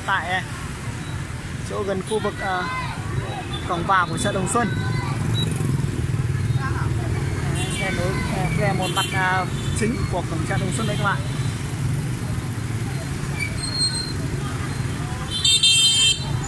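Many motorbike engines hum and putter steadily as traffic passes close by.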